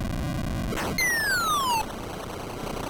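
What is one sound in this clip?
A retro game sound effect glides quickly downward in pitch.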